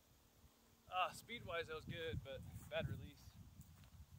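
A man calls out loudly from a short distance away, outdoors.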